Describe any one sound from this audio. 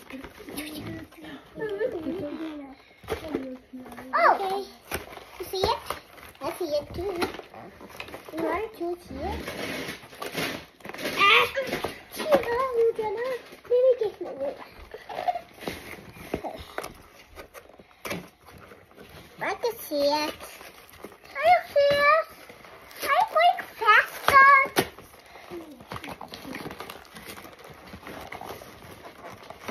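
A second child talks and exclaims nearby.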